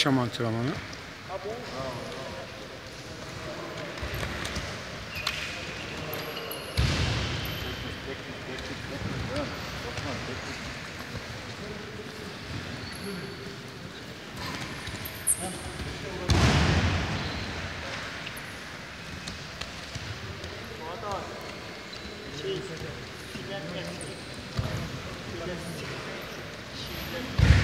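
Many men's voices echo through a large hall.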